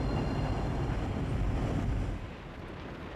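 Traffic hums along a city street outdoors.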